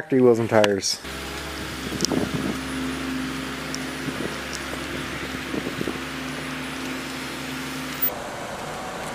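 A car engine runs with a low, steady hum.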